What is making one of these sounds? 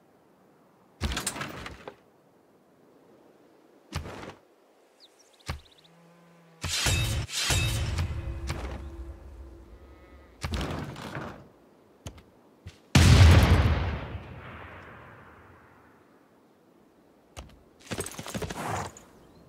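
Short whooshing and chiming game sound effects play now and then.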